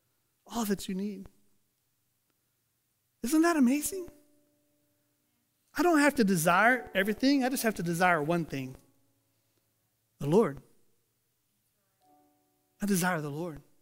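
A middle-aged man speaks calmly into a headset microphone, in short phrases with pauses.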